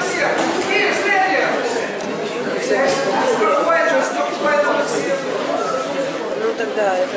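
A crowd of children and adults chatter and call out in an echoing hall.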